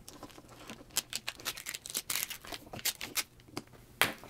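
Thin plastic film crinkles as it is peeled away.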